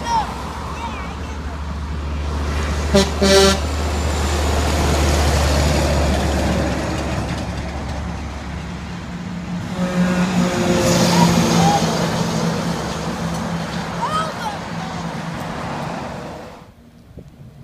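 Heavy trucks rumble loudly past on a road.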